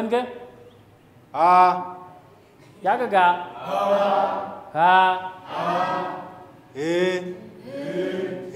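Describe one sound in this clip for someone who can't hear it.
A man pronounces drawn-out vowel sounds clearly, one after another.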